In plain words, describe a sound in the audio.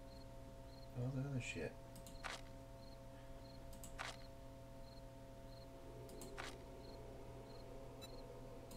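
A man speaks briefly into a microphone, close up.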